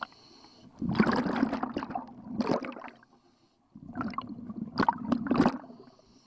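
Air bubbles gurgle and rumble loudly in bursts underwater.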